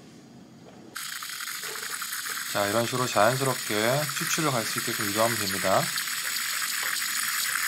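A gas burner hisses steadily under a pot.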